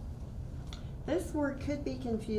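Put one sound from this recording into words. A teenage girl speaks into a microphone.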